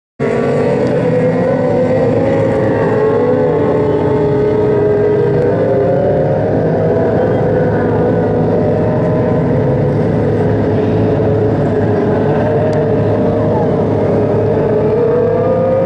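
Several race car engines roar loudly, rising and falling in pitch.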